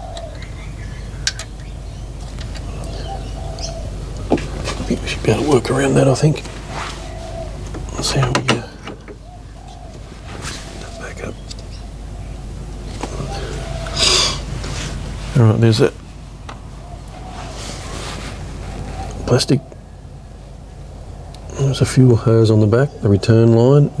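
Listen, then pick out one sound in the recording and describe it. A plastic hose connector clicks and knocks under a hand.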